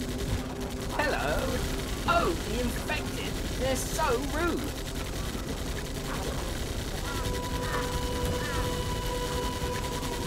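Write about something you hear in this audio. Guns fire in short, rapid bursts.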